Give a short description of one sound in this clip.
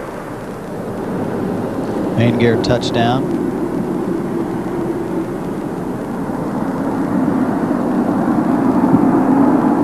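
A landing spacecraft rumbles along a runway with a steady rushing roar.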